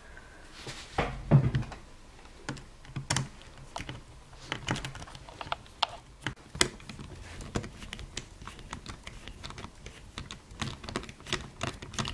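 A screwdriver clicks and scrapes against small metal screws.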